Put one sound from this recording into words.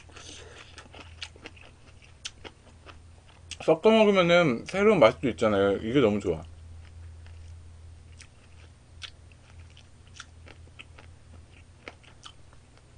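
A young man chews and slurps food noisily close to a microphone.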